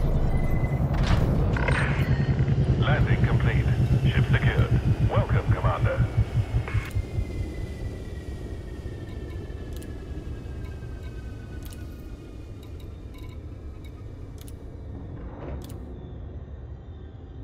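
Interface beeps and clicks sound as menus open and change.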